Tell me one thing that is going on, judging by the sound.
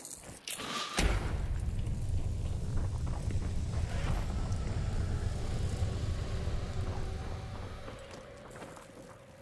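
A deep, loud rumbling roar bursts out and slowly fades.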